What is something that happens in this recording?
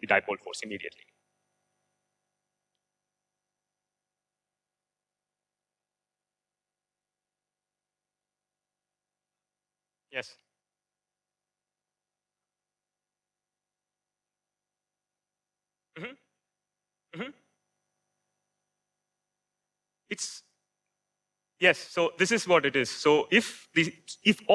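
A man lectures through a microphone, speaking in short bursts with long silent pauses.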